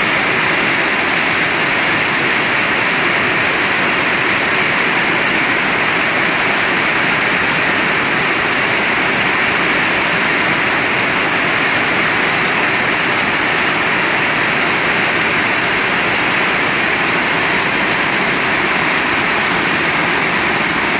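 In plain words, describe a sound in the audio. Heavy rain pours steadily outdoors, splashing on wet pavement.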